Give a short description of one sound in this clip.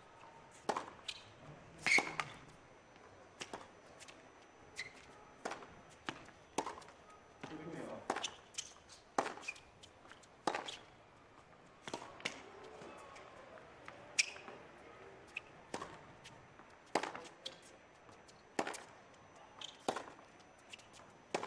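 Tennis balls are struck back and forth with sharp pops of rackets.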